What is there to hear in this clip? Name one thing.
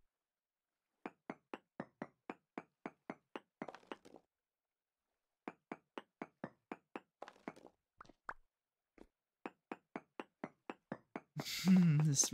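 A pickaxe chips at stone with quick, steady knocks.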